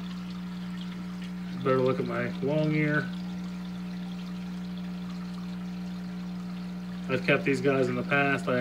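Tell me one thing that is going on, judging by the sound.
Air bubbles stream and gurgle underwater.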